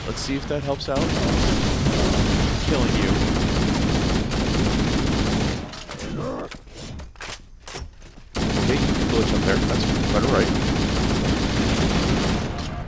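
Gunfire rattles rapidly in bursts.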